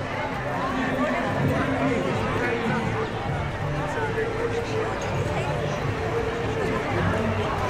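Footsteps walk on stone paving.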